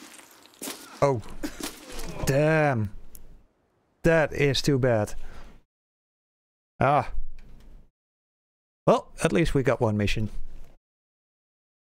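A man talks loudly with animation into a microphone, close by.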